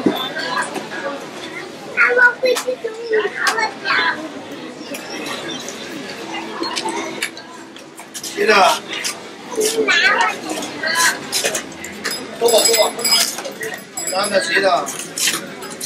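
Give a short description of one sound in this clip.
Metal tongs clink and scrape against metal food trays.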